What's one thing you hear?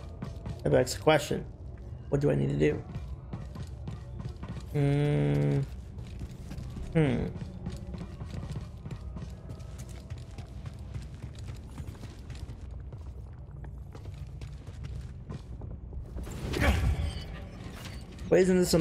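A young man talks into a microphone in short bursts.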